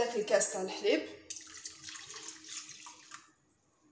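Milk pours into a bowl with a soft splash.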